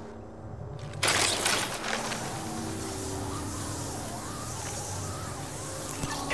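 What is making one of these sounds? Wind rushes loudly during a fast fall in a video game.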